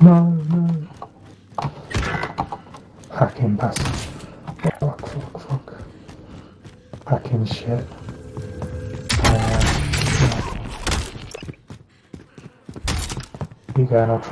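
Footsteps thud quickly on hard floors.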